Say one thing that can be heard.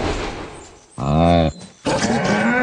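A yak bellows low.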